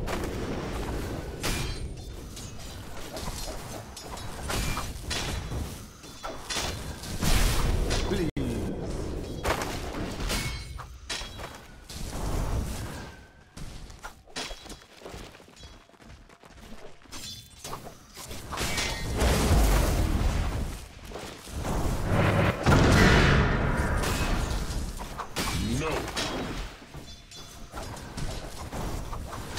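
Weapons clash and strike in quick bursts.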